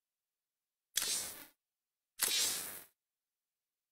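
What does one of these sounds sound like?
A soft interface whoosh plays as the menu changes.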